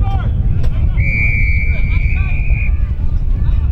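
A referee's whistle blows one long blast.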